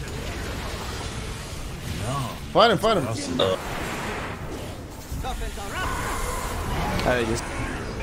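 Magic spells whoosh and crackle in a busy battle.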